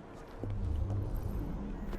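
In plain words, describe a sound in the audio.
Footsteps patter across a rooftop.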